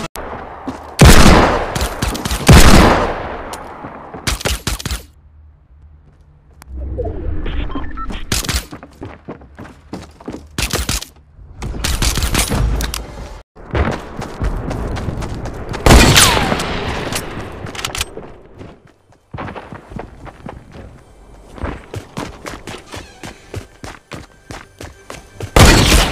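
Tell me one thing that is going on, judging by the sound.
Gunshots crack loudly.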